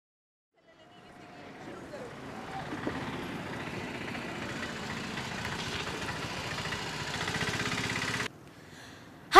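An auto-rickshaw engine rumbles as it drives past.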